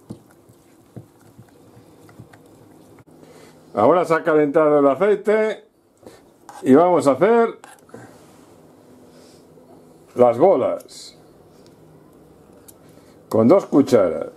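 A spoon scrapes and taps against a metal saucepan.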